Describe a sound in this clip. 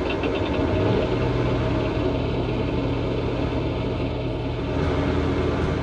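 A generator starts up and hums steadily.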